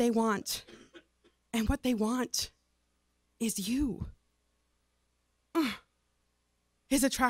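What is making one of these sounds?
A young woman sings softly and emotionally into a microphone, in short phrases with pauses.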